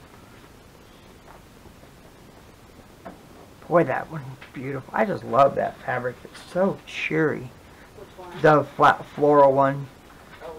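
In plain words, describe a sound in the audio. Cotton fabric squares rustle softly as hands handle them.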